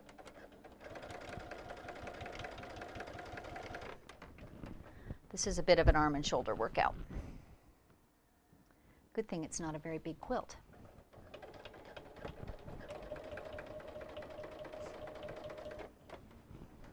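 A sewing machine hums steadily as it stitches in short bursts.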